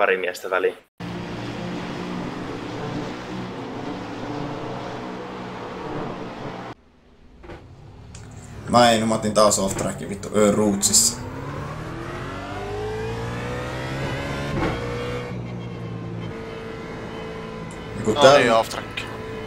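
A race car engine roars and revs through gear changes.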